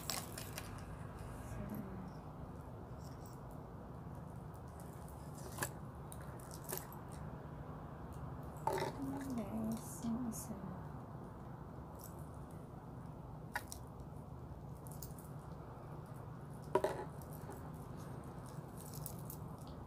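A metal watch bracelet clicks and rattles in a person's hands.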